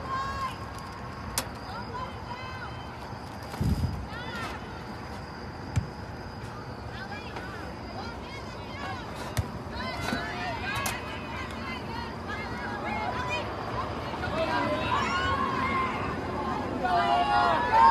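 Young women shout and call out across an open outdoor field.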